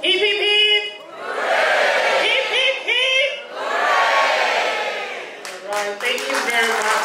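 A crowd of men and women cheers and sings loudly nearby.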